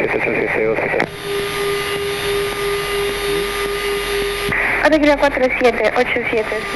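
A man speaks calmly over a headset radio.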